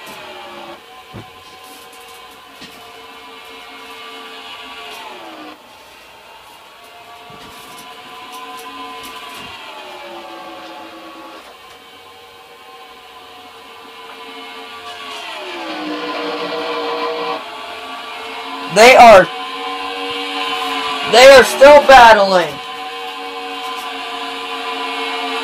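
Racing car engines roar and whine, shifting pitch as they speed around a track.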